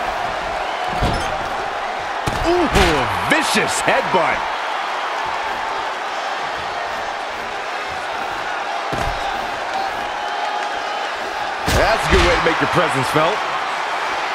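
A body slams onto a wrestling ring with heavy thuds.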